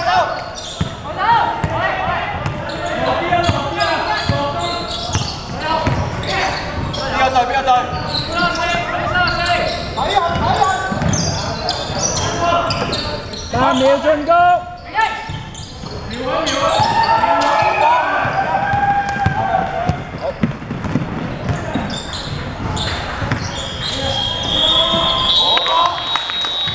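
A basketball bounces on a hard floor in a large echoing hall.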